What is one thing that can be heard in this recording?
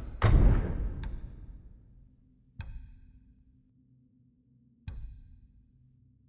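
Short clicks sound as menu items are selected.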